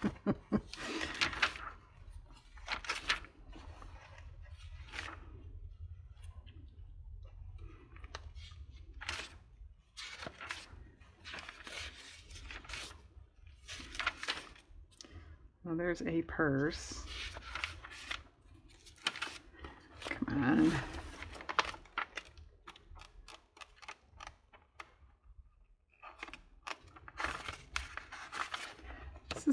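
Magazine pages rustle and flip as they are turned one after another.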